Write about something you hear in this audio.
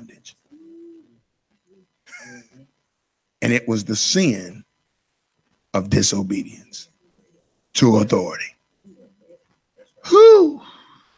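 A middle-aged man speaks with animation into a microphone, in short bursts.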